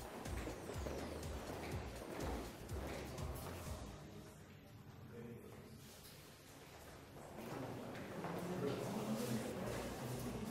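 Footsteps shuffle and tap across a hard floor in an echoing room.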